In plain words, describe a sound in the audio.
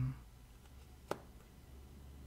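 A playing card is slapped down onto a table.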